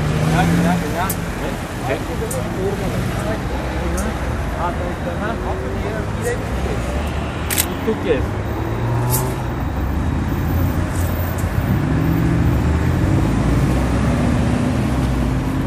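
Cars drive past on a nearby road with a low, steady rumble.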